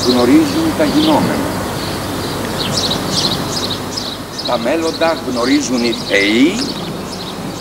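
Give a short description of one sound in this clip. A middle-aged man speaks calmly and expressively nearby, outdoors.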